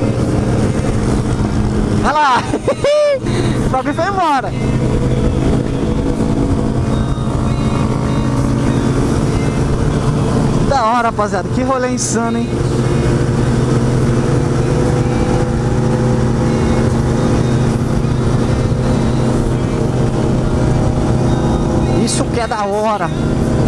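A motorcycle engine drones steadily up close.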